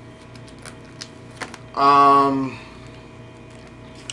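Plastic binder pages rustle as a hand turns them.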